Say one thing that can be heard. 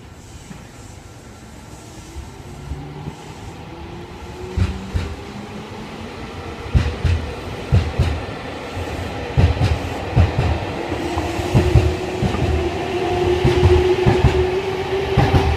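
A train's motor whines, rising in pitch.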